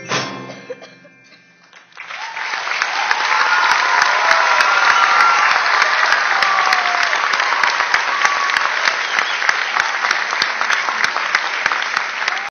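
Marimbas and vibraphones play a fast, ringing tune in an echoing hall.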